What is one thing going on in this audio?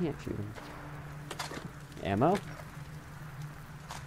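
A fire crackles in a metal barrel.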